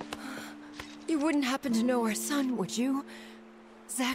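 A middle-aged woman speaks pleadingly.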